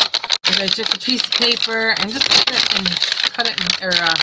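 Paper rustles as it is handled close by.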